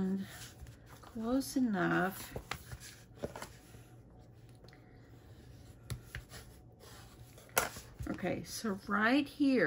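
Stiff cardstock rustles as hands handle it.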